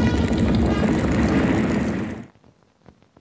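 An explosion roars.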